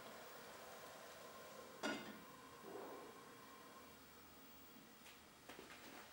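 A metal pot lid clinks against a pot.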